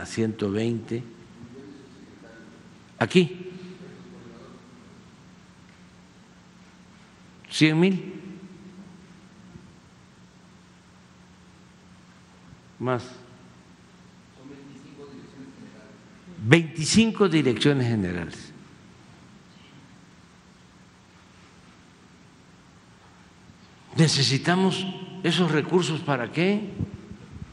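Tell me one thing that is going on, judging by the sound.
An elderly man speaks calmly through a microphone in a large echoing hall, in short bursts with long pauses.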